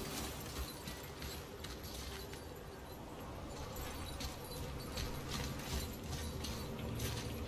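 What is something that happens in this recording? Footsteps crunch on snow and ice.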